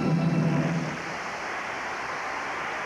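A large crowd applauds and cheers in a big echoing arena.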